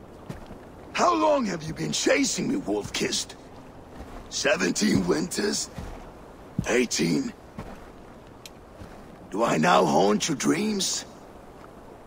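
A man speaks in a low, strained voice, close by.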